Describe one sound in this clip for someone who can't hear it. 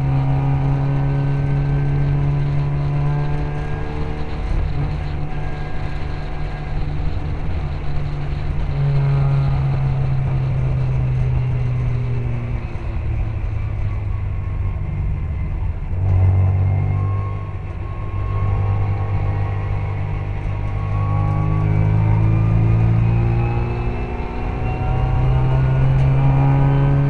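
Other racing car engines whine close by.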